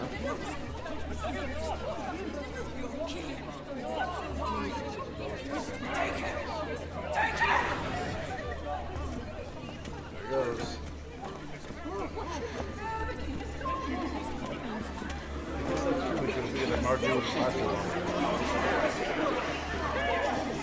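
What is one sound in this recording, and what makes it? A crowd murmurs and chatters nearby, growing louder toward the end.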